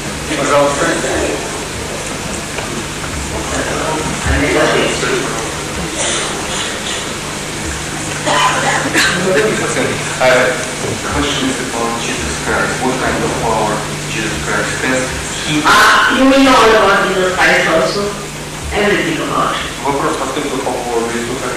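An elderly woman speaks calmly into a microphone, heard through a loudspeaker.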